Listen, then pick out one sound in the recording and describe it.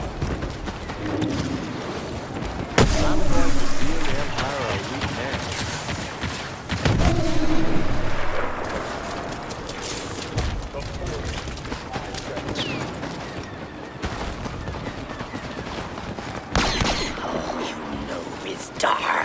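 Footsteps run over rocky ground.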